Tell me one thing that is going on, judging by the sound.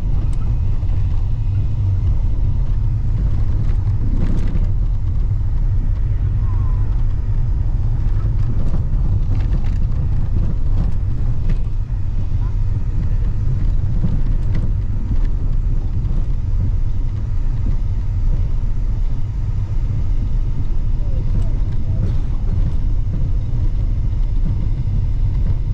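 Tyres crunch and rattle over a gravel road.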